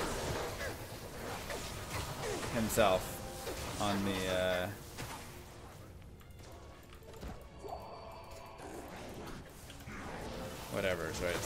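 Magic spells crackle and explode in a fight.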